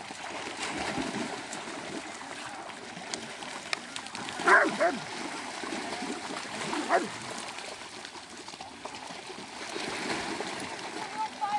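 Water splashes as hounds wade through it.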